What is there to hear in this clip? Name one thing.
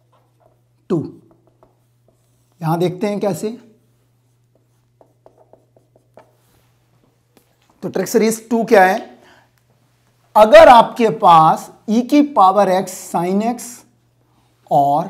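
A man speaks calmly and close by, in pauses.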